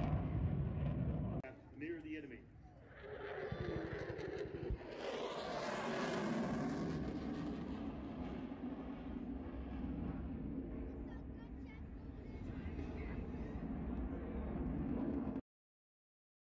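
Loud explosions boom and rumble across open ground.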